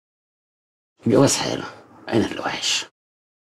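A middle-aged man speaks with feeling, close by.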